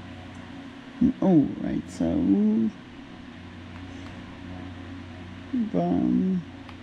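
A handheld game plays short cheerful jingles through a small tinny speaker.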